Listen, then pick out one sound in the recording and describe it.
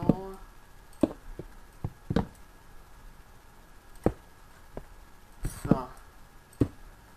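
Blocks are placed with short soft thuds in a video game.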